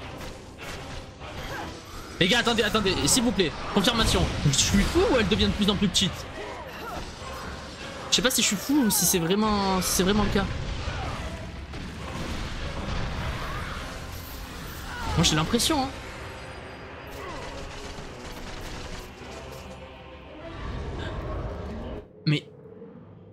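Blades slash and clash with loud impacts in a fight.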